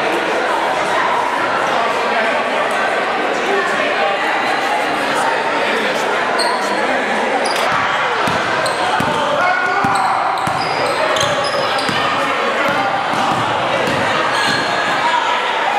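A crowd chatters in an echoing hall.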